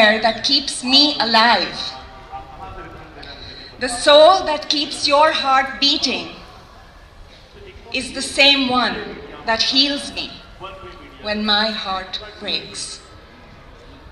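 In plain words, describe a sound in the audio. A young woman recites with feeling into a microphone, heard outdoors over a loudspeaker.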